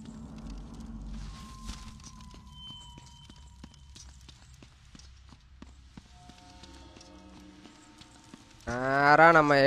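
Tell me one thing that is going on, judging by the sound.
Footsteps run quickly over a stone floor.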